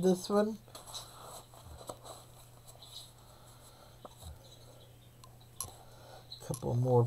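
Paper rustles and crinkles softly close by.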